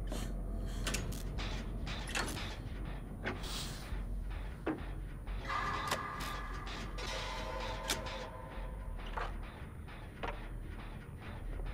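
A machine rattles and clanks as it is worked on.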